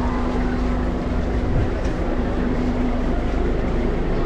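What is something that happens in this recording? A car engine idles slowly nearby.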